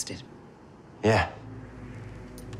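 A young man answers quietly.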